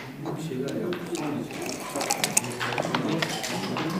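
Dice rattle in a cup.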